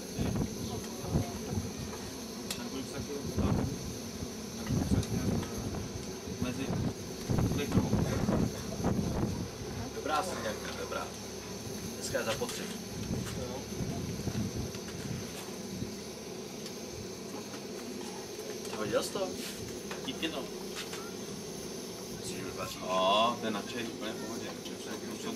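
Men and women chat casually nearby.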